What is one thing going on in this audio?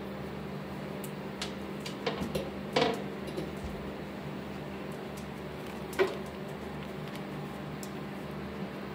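A dog's claws click and tap on a hard floor.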